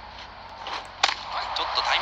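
A baseball smacks sharply into a glove.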